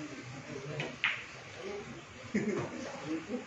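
Pool balls click together on a table.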